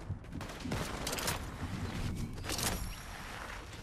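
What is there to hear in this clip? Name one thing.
Footsteps run in a video game.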